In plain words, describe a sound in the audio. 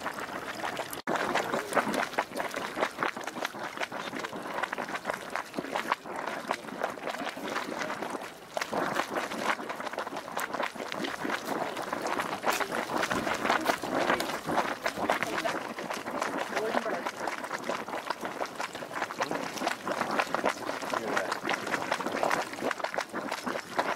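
Hot water bubbles and gurgles in a pool.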